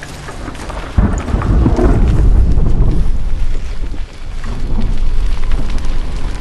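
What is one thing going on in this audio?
Water pours and splashes loudly nearby.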